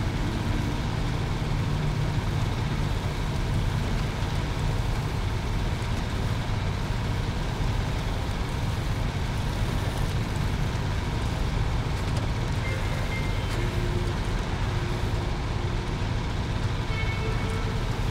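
A truck engine rumbles steadily as it drives over rough ground.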